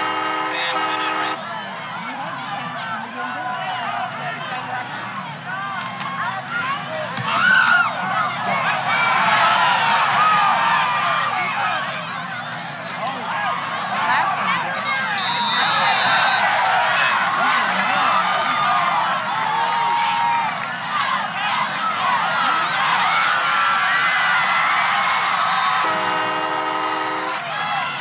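A large crowd cheers and shouts in an open-air stadium.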